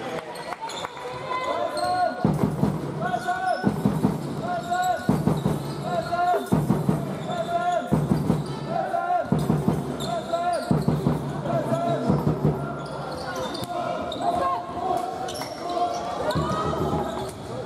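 A basketball bounces on a hard court floor.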